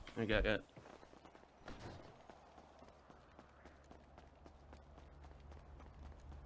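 Footsteps tap on pavement at a steady walking pace.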